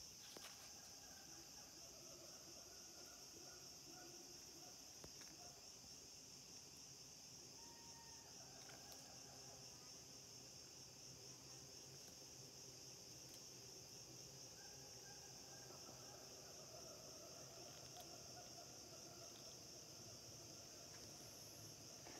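Dry leaves rustle and twigs crackle under a man's hands.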